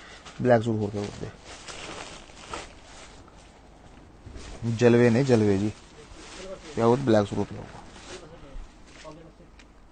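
Fabric rustles softly as hands smooth it out.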